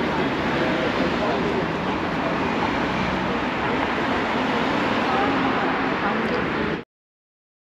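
Cars drive past on the street.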